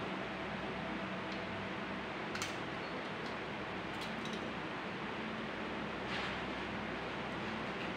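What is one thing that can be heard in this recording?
Scissors snip through thin aluminium can metal.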